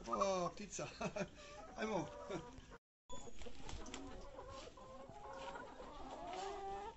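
Hens cluck and squawk.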